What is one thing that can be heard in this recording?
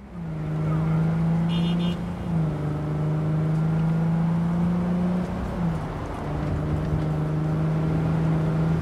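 A car engine hums steadily, shifting pitch now and then.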